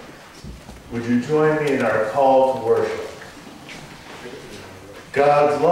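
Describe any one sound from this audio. An elderly man speaks through a microphone in an echoing hall.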